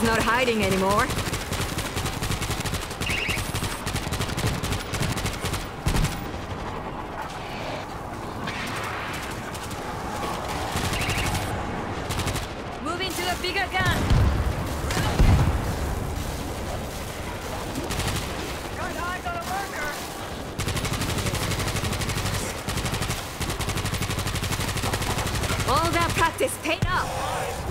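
Gunfire rattles rapidly and constantly.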